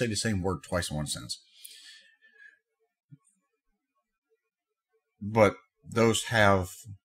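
A middle-aged man talks calmly and close to a microphone, pausing between phrases.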